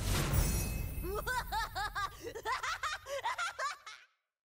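A bright chiming victory jingle plays and fades out.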